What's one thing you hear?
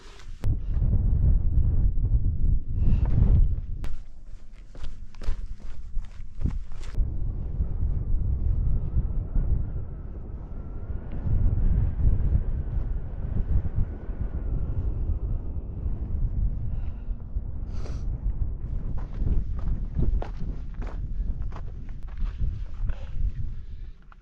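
Boots scrape and crunch on rock.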